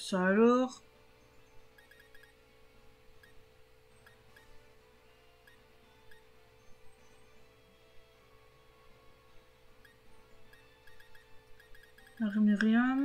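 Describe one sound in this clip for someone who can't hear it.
Soft menu blips tick quickly, over and over.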